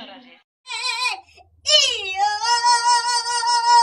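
A young man sings close by.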